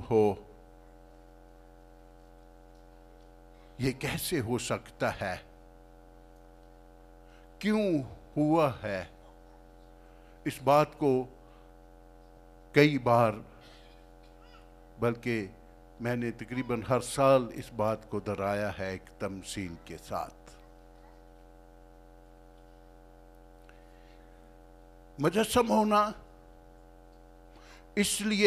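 An elderly man speaks with animation through a microphone, in short bursts with long pauses.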